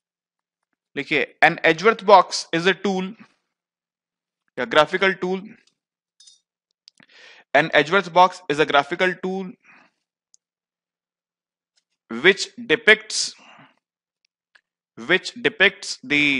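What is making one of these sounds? A man speaks calmly and clearly into a headset microphone, in short phrases with pauses.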